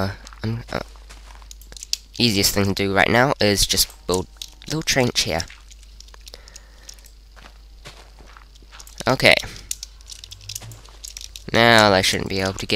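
Blocks of earth and stone crunch as they are dug.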